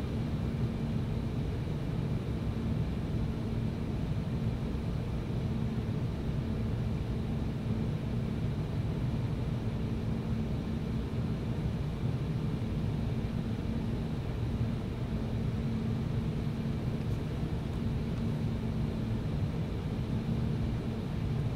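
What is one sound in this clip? A jet engine roars steadily in the cabin of a plane in flight.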